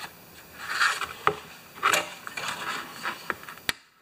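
Metal pliers clatter down onto a hard surface.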